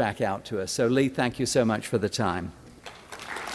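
An older man speaks with animation through a microphone in a large echoing hall.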